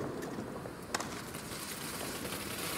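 A firework fountain hisses and crackles as it sprays sparks.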